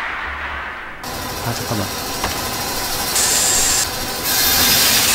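A spinning saw blade whirs and grinds loudly.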